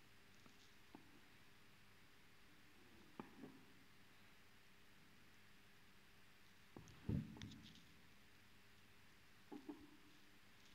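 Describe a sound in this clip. A crochet hook taps lightly a few times.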